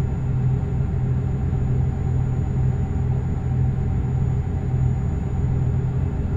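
A truck engine drones steadily at low speed.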